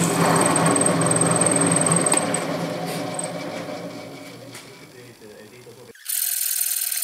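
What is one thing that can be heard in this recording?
A drill press motor hums and slowly winds down.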